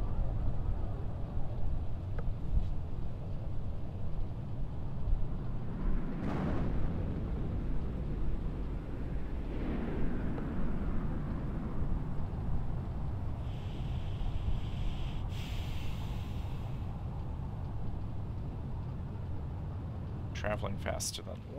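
A spaceship's engine rumbles low and steadily.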